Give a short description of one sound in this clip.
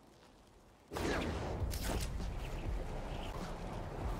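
Air rushes past loudly in a fast swing through the air.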